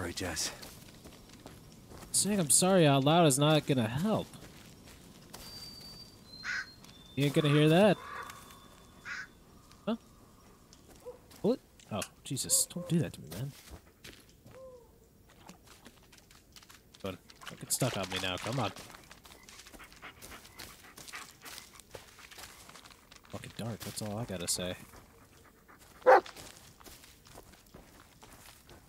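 Footsteps crunch over dry leaves and twigs.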